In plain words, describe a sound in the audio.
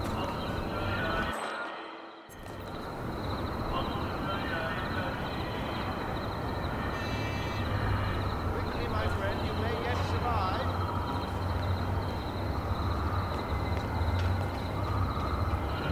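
Footsteps scuff softly on a hard floor.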